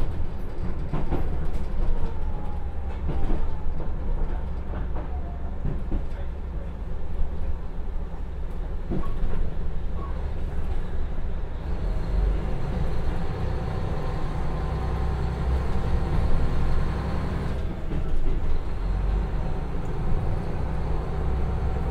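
A diesel railcar engine rumbles steadily as the train rolls along.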